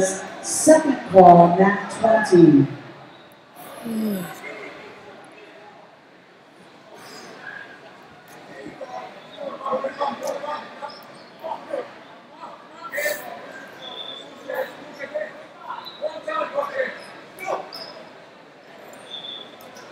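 A crowd of spectators talks and calls out in a large echoing hall.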